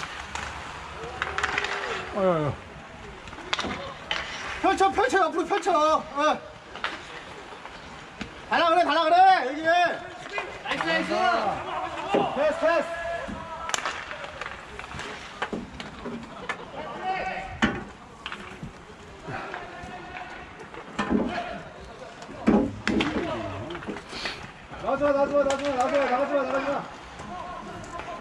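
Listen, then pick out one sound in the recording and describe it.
Hockey sticks clack against a ball on a hard rink.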